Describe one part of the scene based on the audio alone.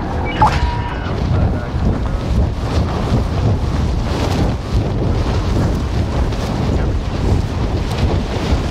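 Wind rushes loudly past during a fast freefall.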